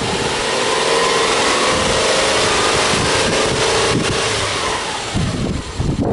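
A car engine revs up, its pitch rising.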